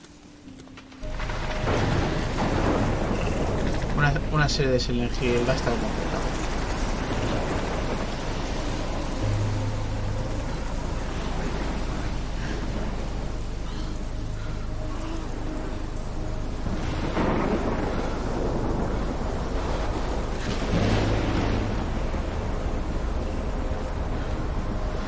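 A strong storm wind roars and howls.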